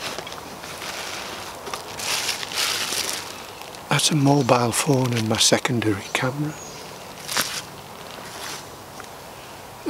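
A plastic wrapper crinkles and rustles in a man's hands.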